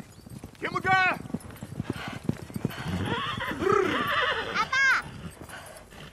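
Horses gallop across the ground.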